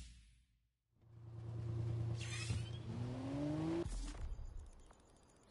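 A car engine idles and revs up loudly.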